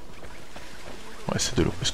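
A fountain splashes and trickles softly.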